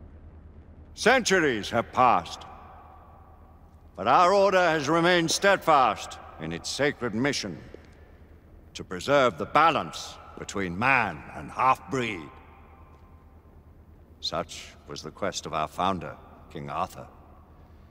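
An elderly man speaks slowly and gravely, with a slight echo.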